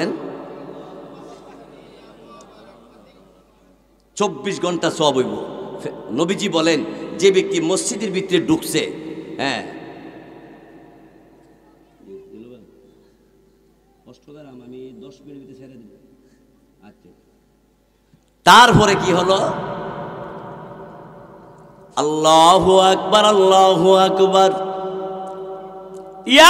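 A middle-aged man chants loudly and passionately into a microphone, echoing through loudspeakers.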